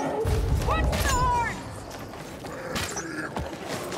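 A bowstring twangs as an arrow is loosed.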